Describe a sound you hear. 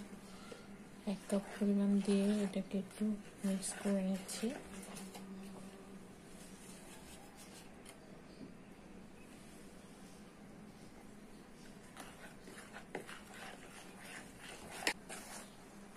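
Hands squish and rustle through flour in a bowl.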